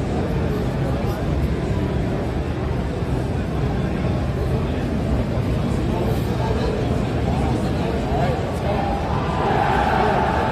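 Game sound effects play from a loudspeaker.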